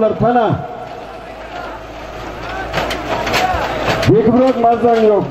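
Men shout nearby outdoors.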